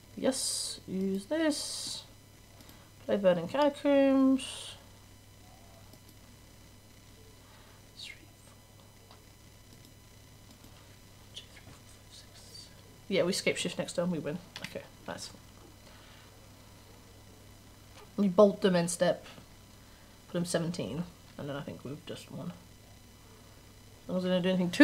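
A young woman talks calmly into a microphone, in bursts with pauses.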